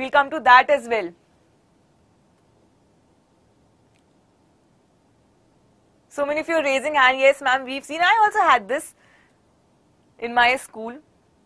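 A young woman speaks clearly and warmly into a close microphone, with pauses.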